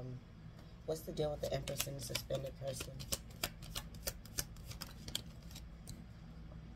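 Playing cards are shuffled with a quick riffling patter.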